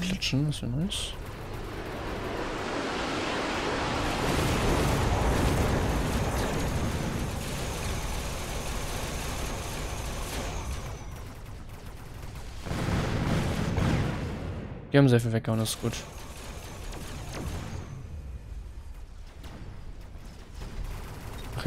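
Gunfire and explosions rattle and boom in a fast battle.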